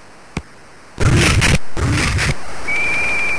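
Football players crash together in a tackle.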